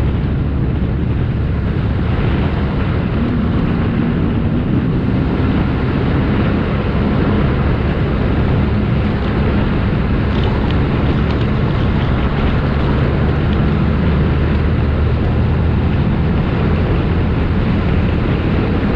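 An engine rumbles steadily as a vehicle drives over sand.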